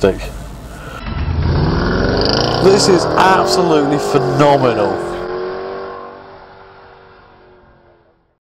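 A car engine roars as the car speeds away, then fades.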